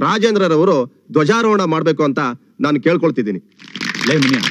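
A middle-aged man speaks into a microphone over a loudspeaker.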